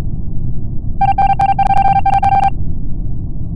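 A rapid run of electronic beeps ticks out as a line of text types across.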